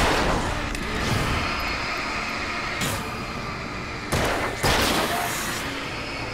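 Explosions boom loudly one after another.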